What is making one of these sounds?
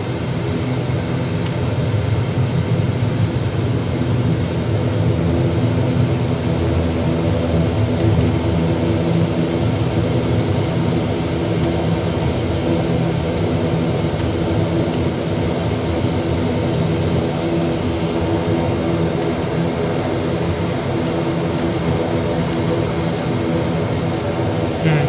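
Aircraft engines roar loudly and steadily.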